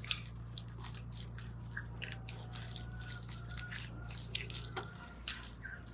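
Hands slap and squelch on wet marinated meat.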